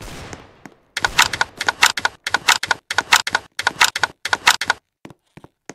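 A gun fires rapid shots in bursts.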